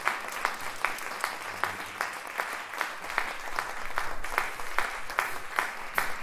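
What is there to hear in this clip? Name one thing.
A big band plays jazz on a stage.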